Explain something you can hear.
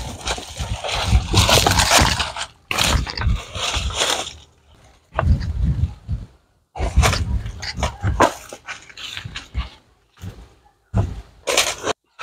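Leaves and brush rustle as a person pushes through undergrowth.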